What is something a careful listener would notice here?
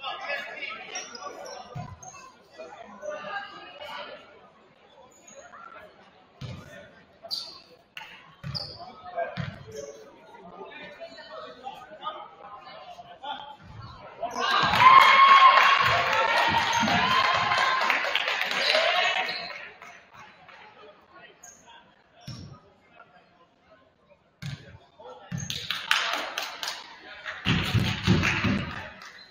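Young players shout to each other in an echoing gym.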